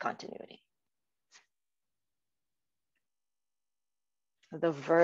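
A woman speaks calmly through an online call microphone, pausing between phrases.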